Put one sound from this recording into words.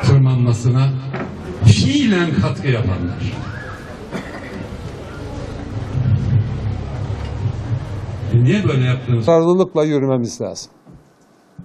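An elderly man speaks into a microphone outdoors, heard through a loudspeaker.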